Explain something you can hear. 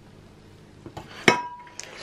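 A ceramic plate clinks as a hand touches it.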